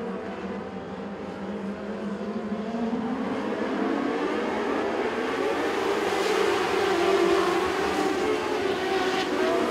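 Many race car engines roar loudly and rev, growing louder as the cars race past.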